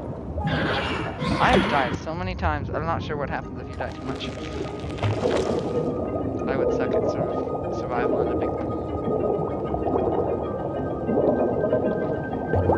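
Water bubbles and gurgles steadily.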